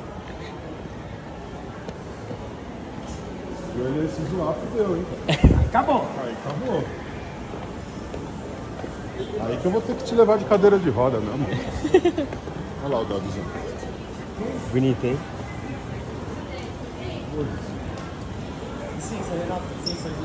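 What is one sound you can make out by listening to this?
Crowd murmur hums in a large echoing space.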